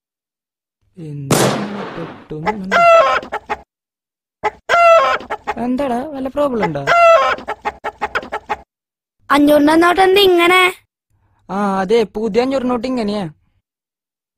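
Young boys talk with animation close by.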